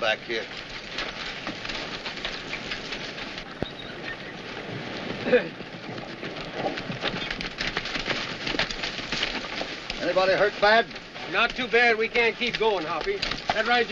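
Horses' hooves gallop over dry ground.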